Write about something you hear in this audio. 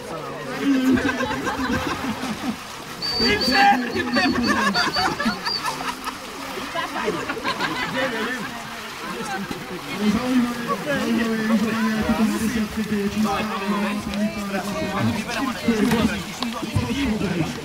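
Several adult men talk and call out outdoors.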